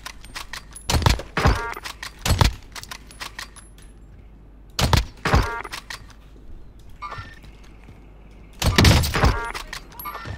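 Sniper rifle shots crack loudly.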